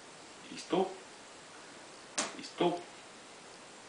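A puppy yaps sharply up close, a few times.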